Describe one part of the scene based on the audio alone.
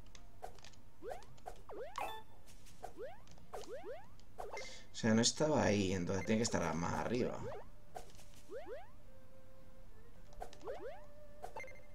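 Short rising blips sound as a game character jumps.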